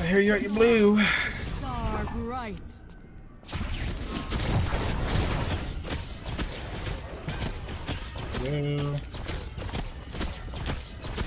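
Magic blasts crackle and whoosh in quick bursts.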